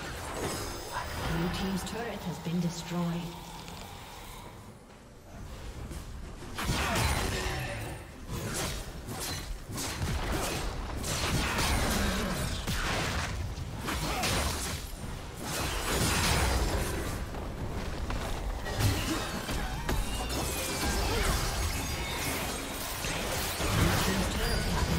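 Game weapons strike with sharp hits.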